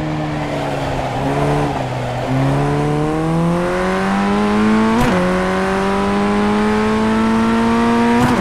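A racing car engine revs up through the gears, its pitch climbing and dropping at each gear change.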